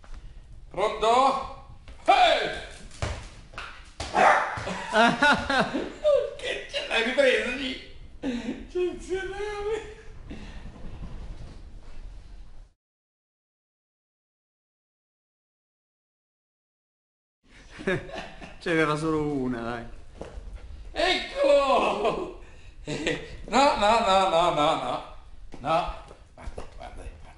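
A small dog yelps and whines excitedly.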